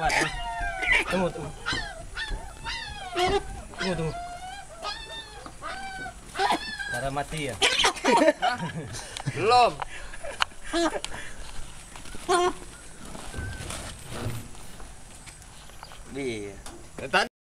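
Several men talk and laugh close by, outdoors.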